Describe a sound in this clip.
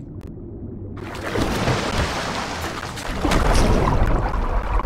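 Bubbles gurgle underwater.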